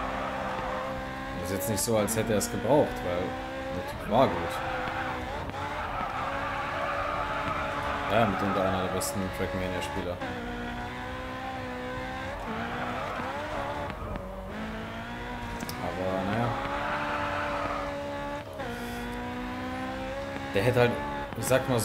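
A racing car engine roars and shifts through gears at high speed.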